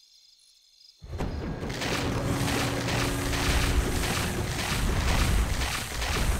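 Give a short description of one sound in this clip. Weapons clash and spells crackle in a busy game battle.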